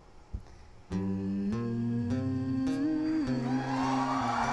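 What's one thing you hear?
An acoustic guitar plays with a small orchestra.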